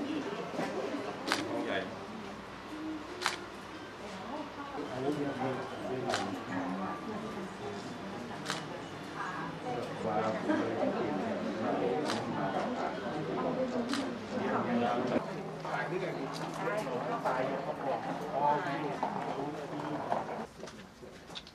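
A group of adults talks in a small room.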